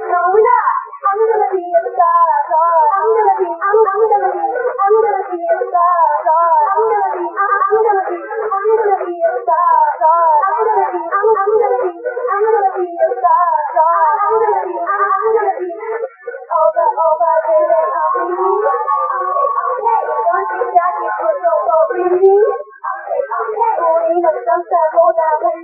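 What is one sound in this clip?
Young women sing together through microphones.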